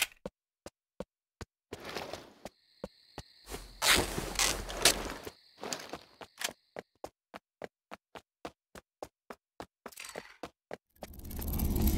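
Footsteps thud steadily on hard ground.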